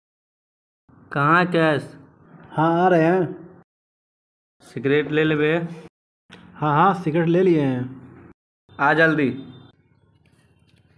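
A man talks on a phone with animation close by.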